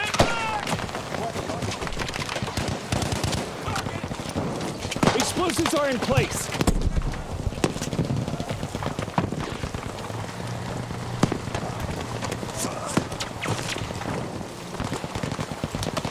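Gunshots crack sharply in rapid bursts, some close and some distant.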